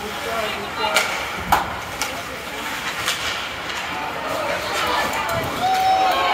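Hockey sticks clack against a puck and each other.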